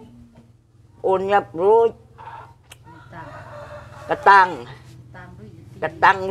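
An elderly woman speaks with animation, close by.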